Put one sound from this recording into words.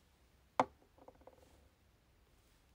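A young woman speaks softly and briefly, close by.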